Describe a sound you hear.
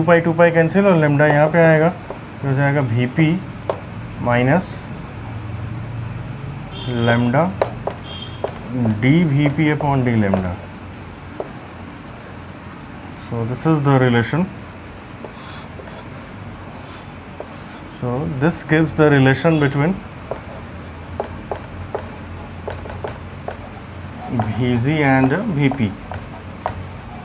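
A man explains calmly in short bursts, close by.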